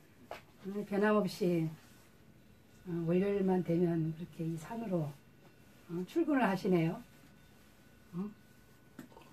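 An elderly woman speaks calmly and close by, in short phrases with pauses.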